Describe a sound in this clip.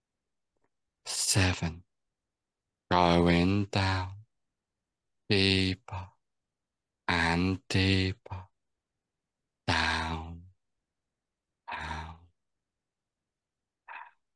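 A man speaks calmly in short phrases with pauses, heard through an online call.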